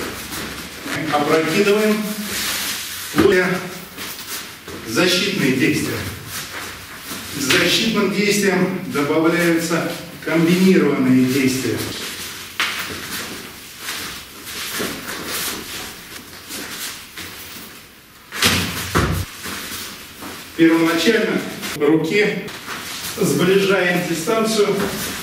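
A middle-aged man talks calmly.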